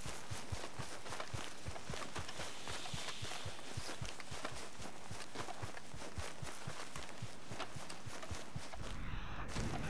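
Footsteps swish through tall grass.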